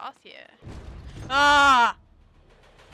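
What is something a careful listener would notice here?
A young woman shouts in surprise close to a microphone.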